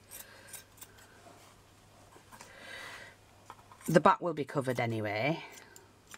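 Scissors snip through fabric and card.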